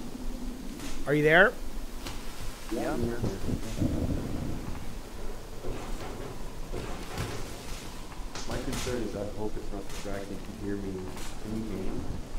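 A middle-aged man speaks casually into a close microphone.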